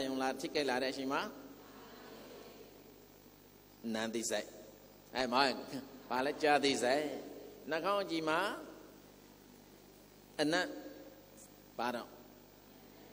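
A middle-aged man speaks calmly and with expression into a microphone, in short bursts with pauses.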